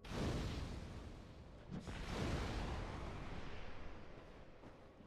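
A fiery blast roars and slowly fades away.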